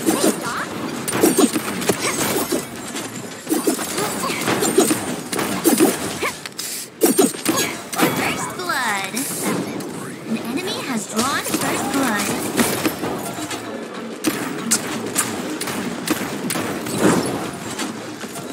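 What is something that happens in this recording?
Energy weapons fire in rapid bursts with sharp zapping shots.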